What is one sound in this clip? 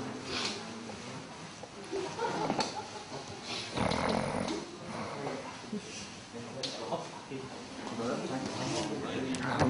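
A young man speaks softly close by.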